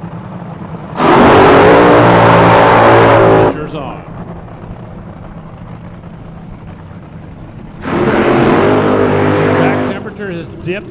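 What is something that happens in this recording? A dragster engine roars at full throttle in loud bursts.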